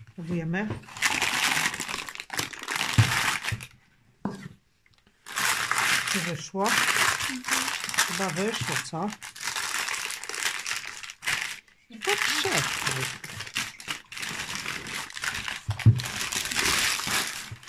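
Baking paper rustles and crinkles as hands unwrap a loaf.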